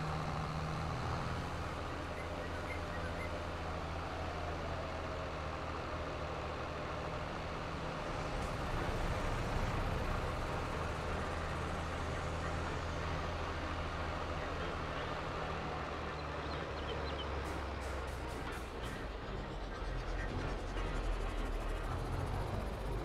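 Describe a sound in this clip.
A tractor engine rumbles steadily as it drives along.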